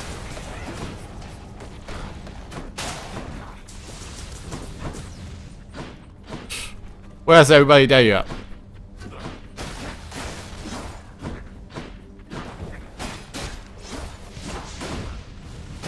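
Game sound effects of fighting clash and whoosh.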